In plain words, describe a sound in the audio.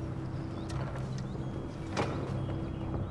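A clay pot knocks against a wooden table.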